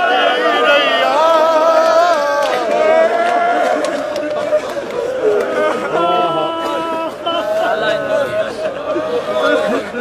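A crowd of men murmurs along outdoors.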